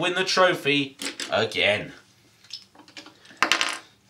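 A plastic toy knocks as it is set down on a wooden board.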